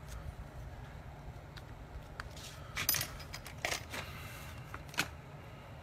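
Paper rustles as it is lifted off leather.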